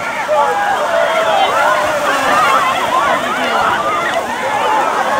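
A crowd of people shouts and cheers loudly outdoors.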